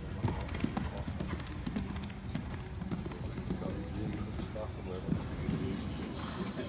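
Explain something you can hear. A horse's hooves thud rhythmically on soft sand in a large echoing hall.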